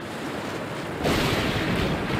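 Thunder cracks loudly.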